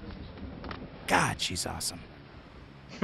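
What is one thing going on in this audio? A man speaks with a deep, gruff voice.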